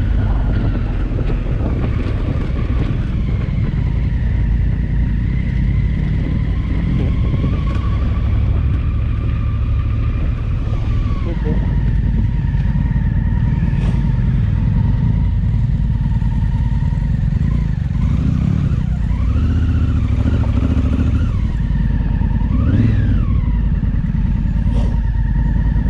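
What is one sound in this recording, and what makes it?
Wind rumbles past loudly outdoors.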